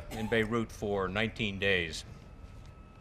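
A man speaks briefly over a loudspeaker.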